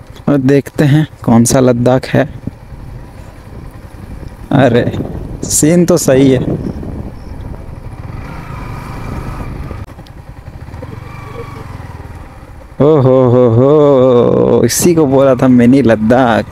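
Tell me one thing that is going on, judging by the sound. A motorcycle engine hums and revs while riding.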